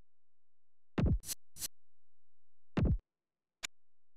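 A louder game menu sound swooshes when a new page opens.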